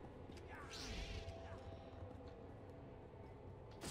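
A lightsaber hums and buzzes.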